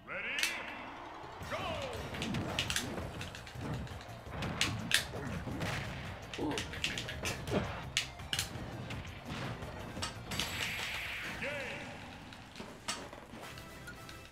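Video game fight sounds hit and crash loudly.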